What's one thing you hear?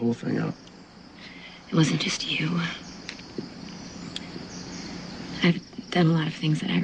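A man speaks in a low, serious voice up close.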